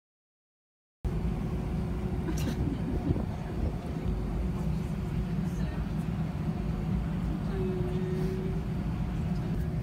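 An aircraft cabin hums with a steady low engine drone.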